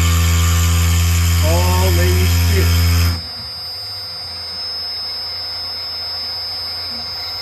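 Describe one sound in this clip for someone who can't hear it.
A milling cutter grinds through a plastic block.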